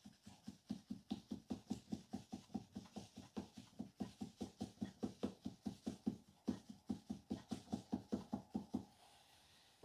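A wooden paddle taps rapidly against soft clay.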